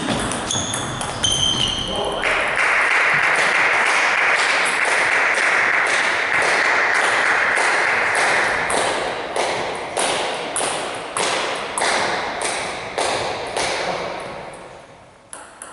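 A table tennis ball clicks back and forth on paddles and the table in a large echoing hall.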